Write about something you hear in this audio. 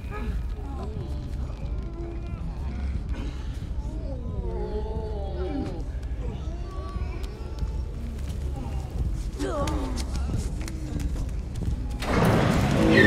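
A large creature moans and groans in low, wavering tones.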